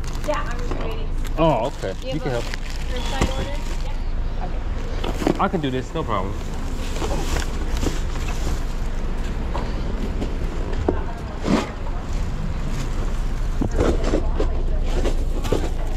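Plastic wrapping rustles and crinkles as packages are handled.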